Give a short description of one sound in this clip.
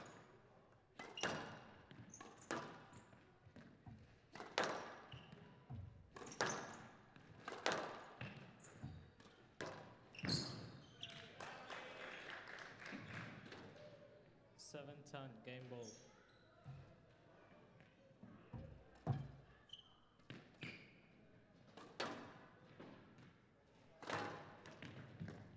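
A squash ball smacks hard against the walls again and again in an echoing hall.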